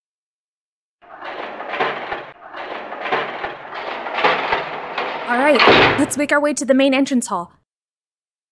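Heavy iron gates creak and grind open.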